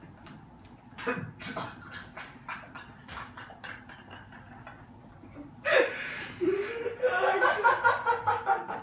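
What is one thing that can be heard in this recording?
A young man laughs loudly and heartily close by.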